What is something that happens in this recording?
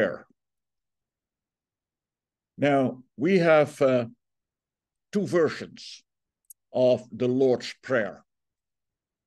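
An elderly man speaks calmly over an online call, in short phrases with pauses.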